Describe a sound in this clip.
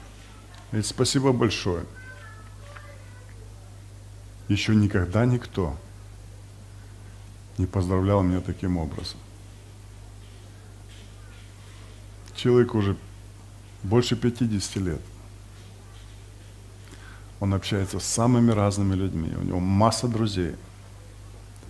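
A man speaks calmly in short phrases with long pauses, heard through a microphone in an echoing room.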